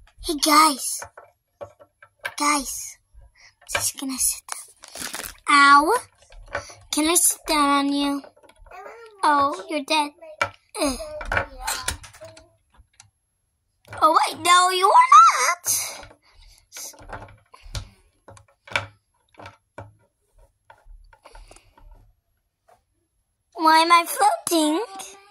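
A plastic toy figure taps and knocks on a wooden table.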